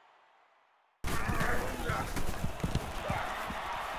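Football players' pads thud and clash together.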